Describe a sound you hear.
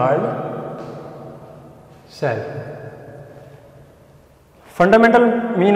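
A young man speaks with emphasis into a clip-on microphone, in a room with a noticeable echo.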